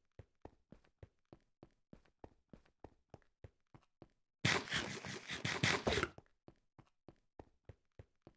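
Footsteps tread steadily on stone in a quick, even rhythm.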